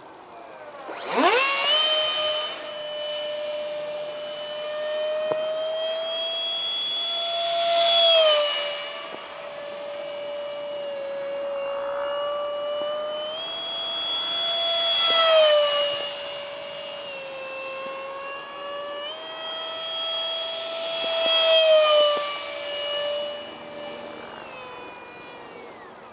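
A model jet plane's motor whines overhead, rising and falling in pitch as the plane swoops past.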